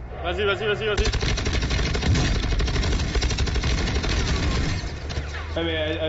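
Gunfire rattles loudly.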